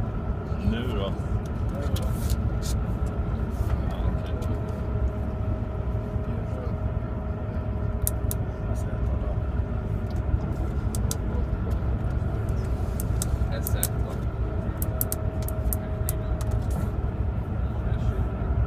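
Playing cards slap softly onto a table.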